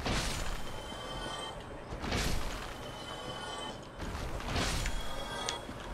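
Bones clatter and scatter across the ground.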